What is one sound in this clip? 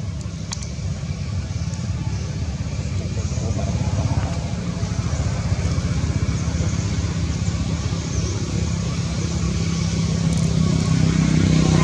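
A monkey gives a short call nearby.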